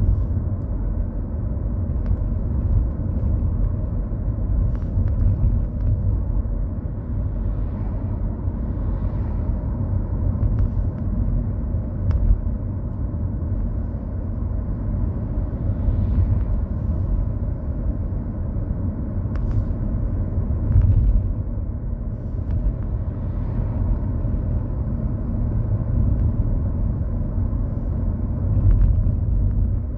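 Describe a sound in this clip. A car engine hums and tyres rumble steadily on the road, heard from inside the car.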